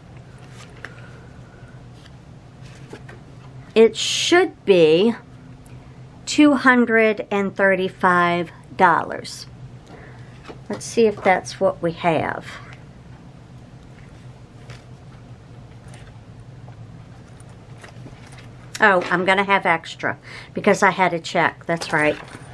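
Paper money rustles as it is handled and counted.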